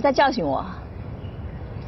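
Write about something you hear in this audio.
A woman speaks calmly and coolly, close by.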